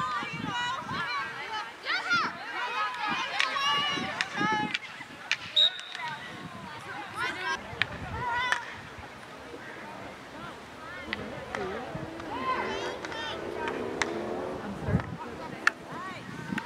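Hockey sticks clack against each other and the ball.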